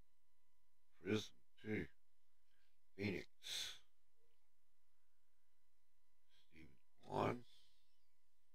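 An older man speaks into a microphone in short bursts.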